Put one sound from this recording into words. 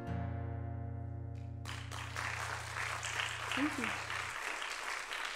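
An acoustic guitar's final chord rings out and fades in a large hall.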